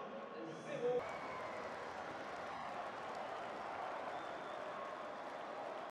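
A large stadium crowd murmurs and cheers in a steady roar.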